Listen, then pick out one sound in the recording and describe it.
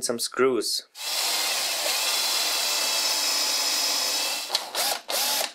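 A power drill whirs steadily as it bores into wood.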